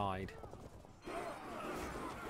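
Soldiers clash in a distant battle.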